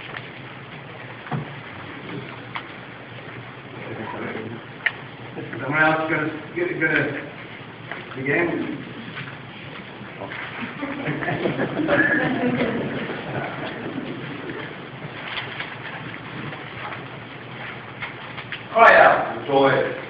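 A man speaks to an audience, heard from a distance.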